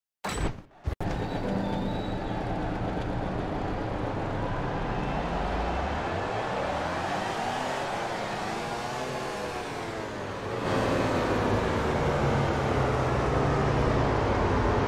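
Motorcycle engines rumble and idle.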